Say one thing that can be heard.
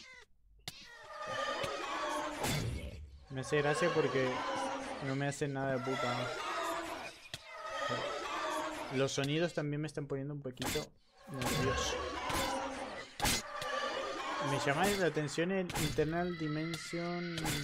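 Sword blows strike a monster with dull thuds.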